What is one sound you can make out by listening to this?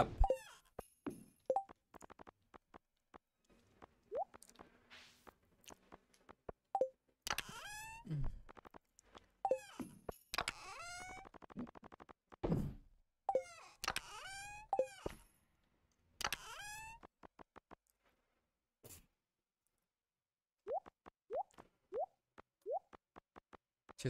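Soft clicks tick as items are picked.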